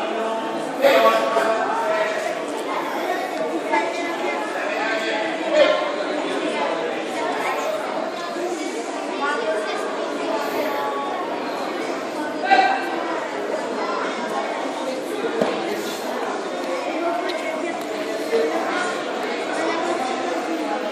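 Children and adults chatter and call out in a large echoing hall.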